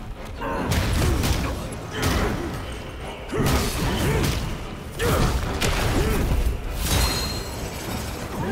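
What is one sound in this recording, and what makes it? Heavy blows land with loud thuds and crashes.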